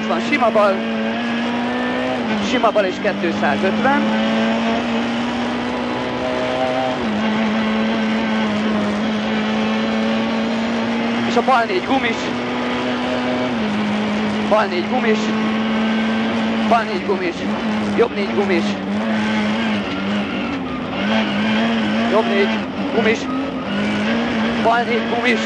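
A rally car engine roars steadily and shifts pitch as the gears change.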